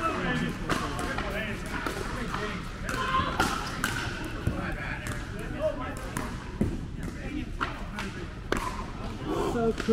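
Sneakers squeak and tap on a hard court.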